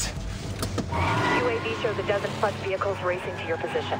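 Vehicles race along a street with engines roaring.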